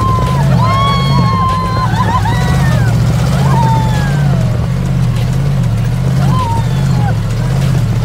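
A buggy engine roars while driving over sand.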